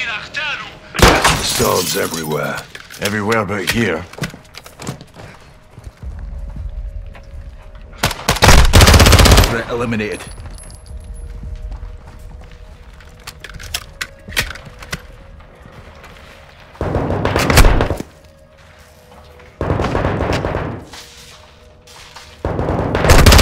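A submachine gun fires loud bursts.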